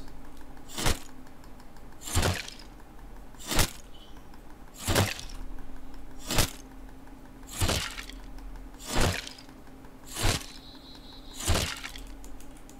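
A hatchet chops into a tree trunk with regular thuds.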